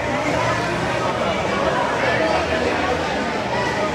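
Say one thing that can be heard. Men talk to each other close by.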